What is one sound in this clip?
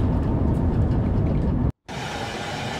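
A train rumbles heavily along the tracks, heard from inside the cab.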